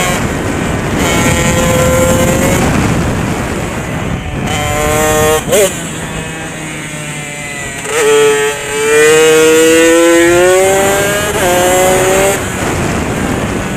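A motorcycle engine roars and revs up and down through the gears.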